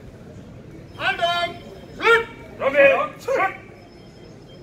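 A man shouts commands loudly in a large echoing hall.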